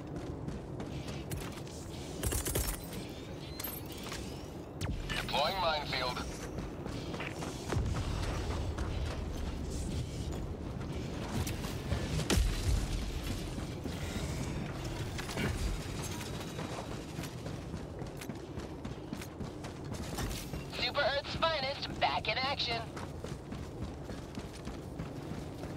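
Heavy boots crunch on rocky ground.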